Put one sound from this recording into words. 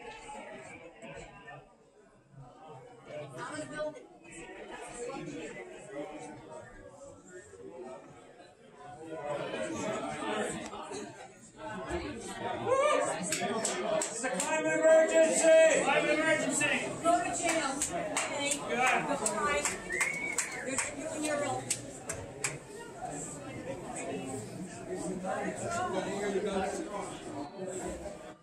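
A crowd of men and women chatters loudly in an echoing hall.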